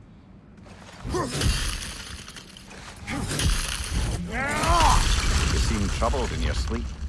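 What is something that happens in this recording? An axe strikes hard against rock.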